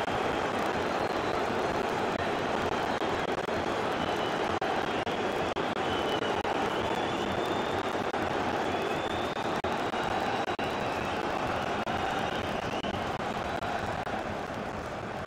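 A large stadium crowd murmurs and chants.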